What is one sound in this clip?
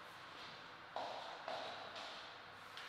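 A ping-pong ball bounces on a table with light clicks.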